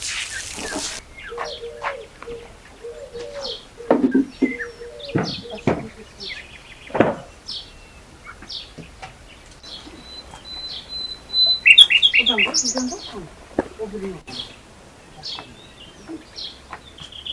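A wooden chair knocks and clatters as it is handled.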